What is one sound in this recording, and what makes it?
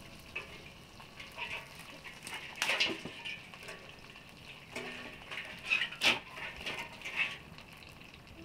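Dry twigs rustle and snap as they are handled.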